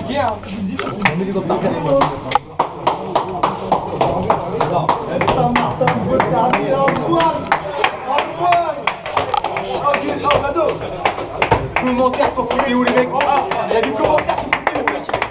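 Men clap their hands in a fast, steady rhythm.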